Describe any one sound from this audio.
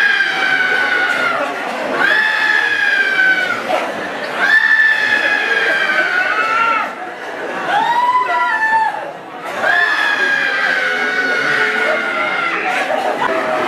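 A man sings loud, long notes through a microphone.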